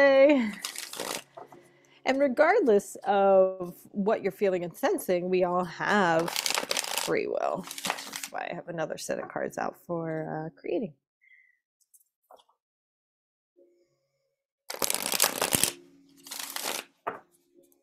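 Playing cards riffle and rustle as they are shuffled by hand.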